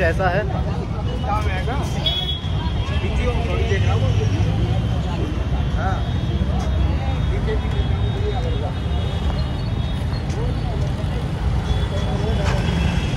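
A crowd of men talk and call out nearby, outdoors.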